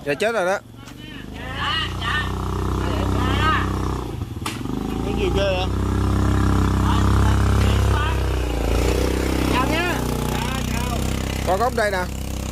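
A motorbike engine idles close by with a low rumble.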